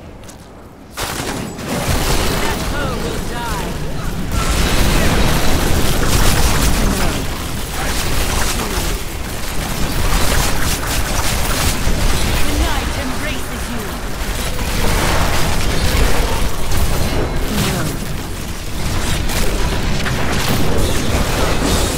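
Spells and weapons clash loudly in a chaotic fantasy battle.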